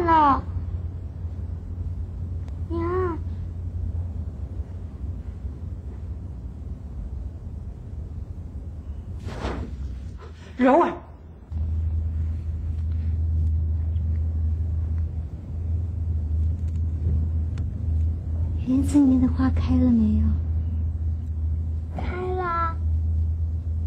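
A young child speaks in a high voice nearby.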